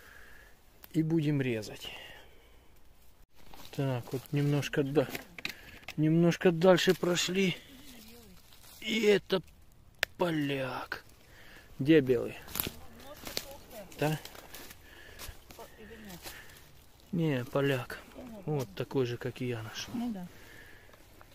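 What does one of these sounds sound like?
A man talks calmly close by, pausing often.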